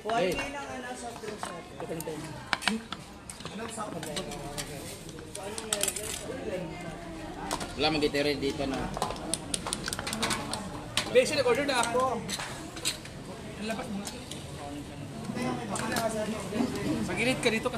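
Dishes and cutlery clatter on a table.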